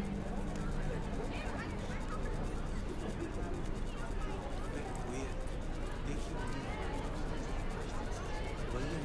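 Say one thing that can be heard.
Young men and women murmur and chat in a room.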